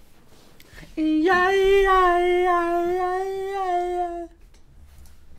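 A young man sings out a long, loud held note close to a microphone.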